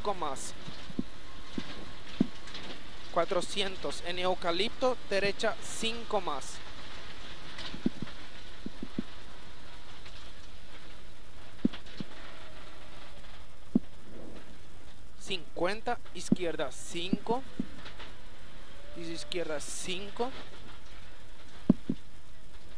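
Gravel and stones knock against the car's underside.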